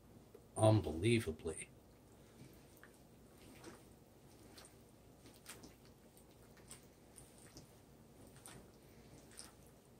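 A hand squishes and mixes wet food in a bowl.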